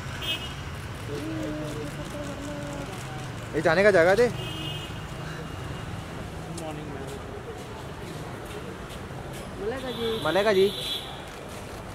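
A young woman talks briefly with people close by.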